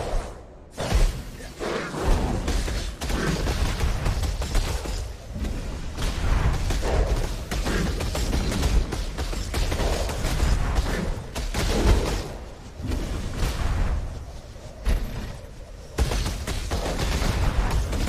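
Game spells and blows crackle and thud during a fight.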